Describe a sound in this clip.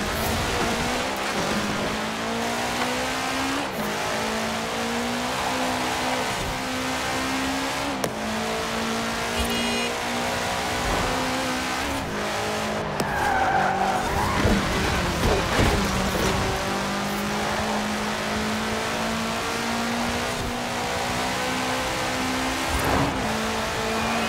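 A car engine roars at high revs, shifting gears as it speeds up.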